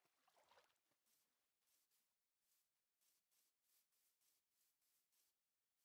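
Footsteps pad steadily across grass.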